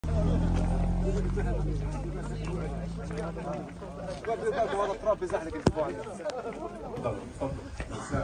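Footsteps shuffle on pavement.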